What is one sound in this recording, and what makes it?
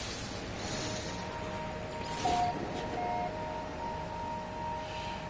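A soft electronic chime rings out in steady tones.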